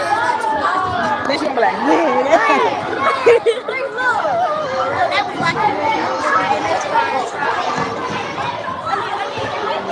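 A young girl talks close to the microphone.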